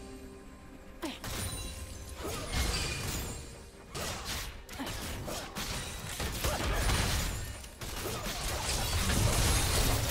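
Fighting sounds from a video game crash and clash in quick bursts.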